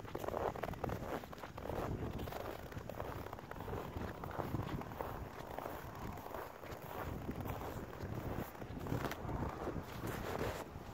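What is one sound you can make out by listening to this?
Wind blusters outdoors.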